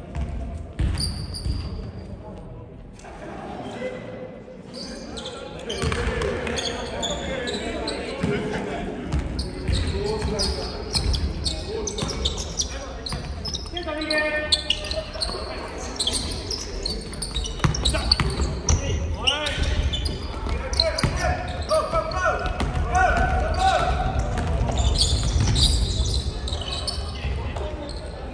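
Young players shout to each other in an echoing gym.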